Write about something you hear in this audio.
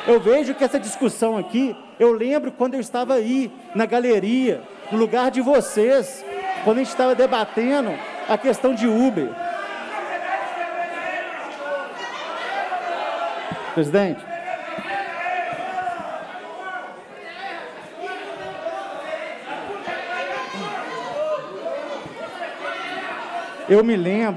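A man speaks forcefully through a microphone in a large echoing hall.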